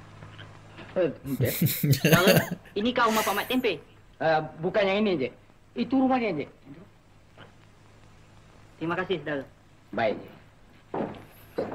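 Men talk in an old film.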